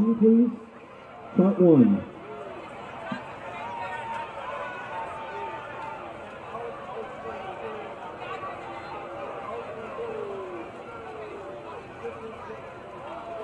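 A crowd of young men and women talk and call out over each other outdoors.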